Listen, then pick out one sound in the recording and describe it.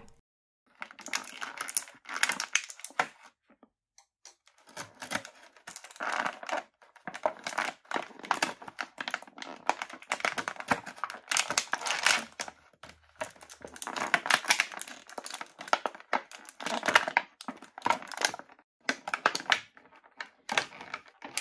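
Plastic packaging crinkles and rustles as hands open it.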